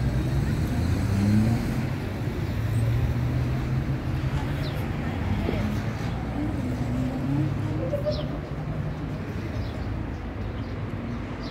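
Passersby murmur and talk nearby.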